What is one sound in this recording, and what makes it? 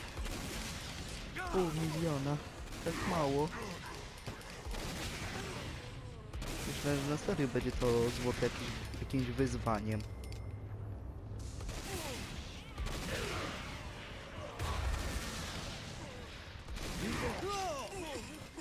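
Loud explosions boom and crackle.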